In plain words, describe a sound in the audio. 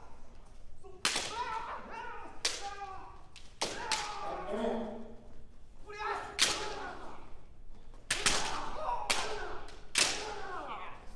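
Bamboo swords strike each other with sharp cracks.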